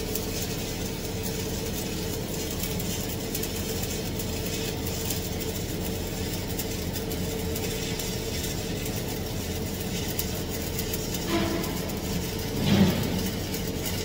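A welding arc crackles and buzzes steadily.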